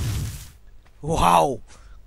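A large creature growls loudly.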